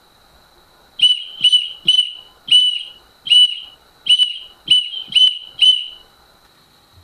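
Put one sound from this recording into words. An electronic keychain beeps in a pattern of short and long blasts.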